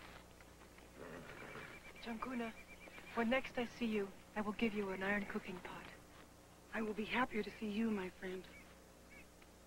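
A woman speaks with feeling, close by.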